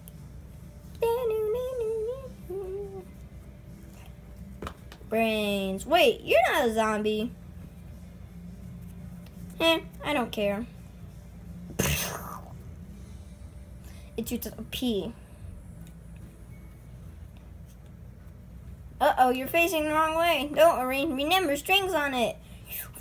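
A young boy talks close by, in short bursts with pauses.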